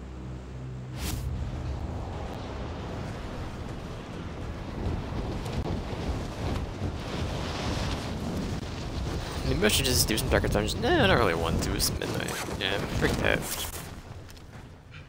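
Wind rushes loudly past a falling body.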